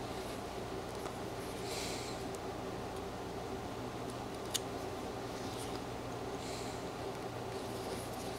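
A knife scrapes and shaves a small piece of wood.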